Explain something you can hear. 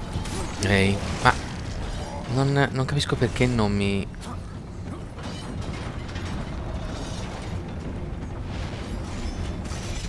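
A huge mechanism grinds and rumbles low.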